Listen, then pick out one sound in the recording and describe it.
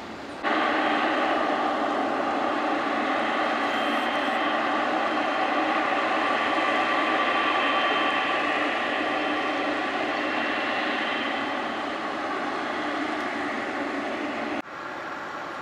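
A jet airliner's engines roar and whine steadily as it taxis nearby.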